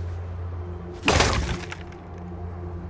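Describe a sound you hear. A wooden box breaks apart with a crash.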